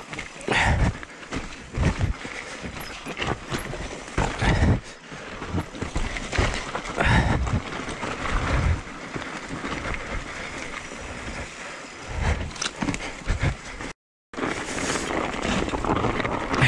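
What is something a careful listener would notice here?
A bike chain and frame rattle over bumps.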